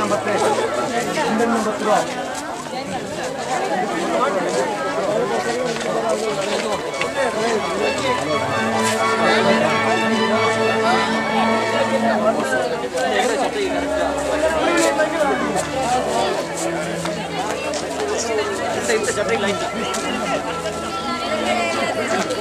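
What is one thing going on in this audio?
A crowd of young men and women chatter and talk nearby outdoors.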